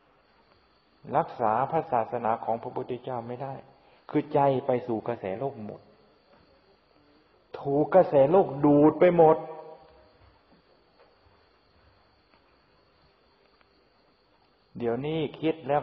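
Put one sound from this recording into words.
An elderly man speaks calmly and slowly, close by.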